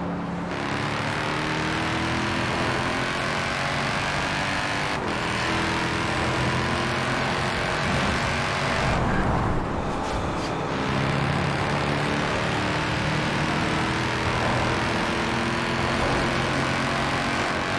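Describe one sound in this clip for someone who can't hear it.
A sports car engine roars loudly, rising in pitch as it speeds up and dropping briefly between gear changes.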